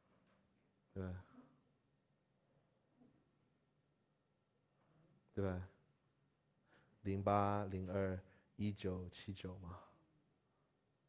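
A young man speaks calmly into a clip-on microphone, in short bursts with pauses.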